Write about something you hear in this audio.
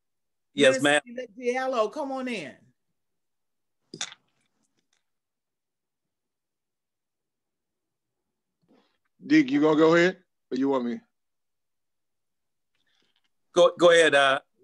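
A man speaks calmly over an online call, in short bursts with pauses.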